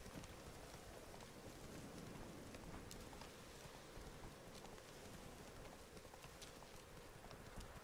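Hooves thud as a horse gallops.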